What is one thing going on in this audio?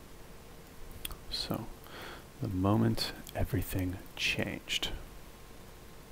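A young man speaks briefly into a headset microphone, close by.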